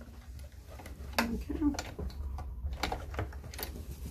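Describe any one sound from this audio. A zipper rustles and clicks against a sewing machine.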